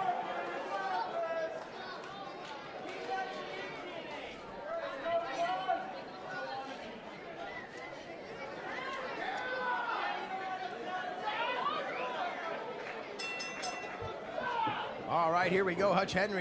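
A crowd chatters and cheers in a large echoing hall.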